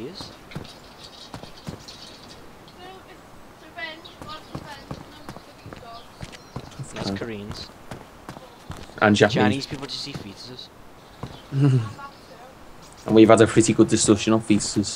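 Footsteps tread on a hard concrete floor.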